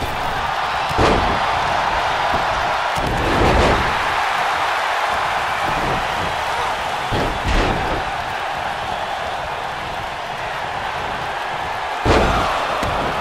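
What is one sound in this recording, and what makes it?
Bodies slam down heavily with loud thuds.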